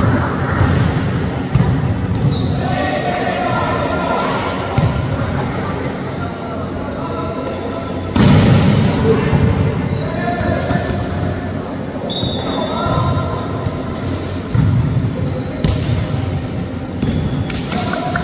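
A crowd of young people chatters and cheers nearby.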